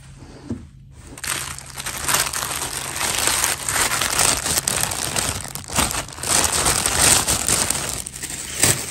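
Plastic wrapping crinkles loudly close by.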